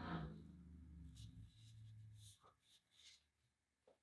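Paper crinkles as a sheet is peeled away.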